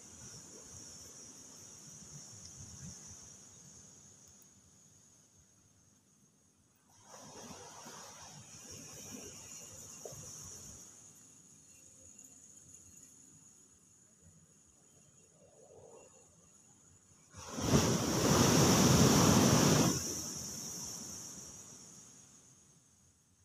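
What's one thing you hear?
A hermit crab scrapes and shuffles in sand.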